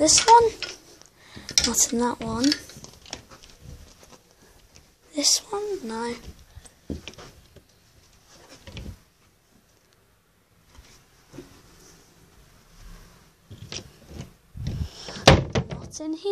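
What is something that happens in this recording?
A wardrobe door slides and knocks.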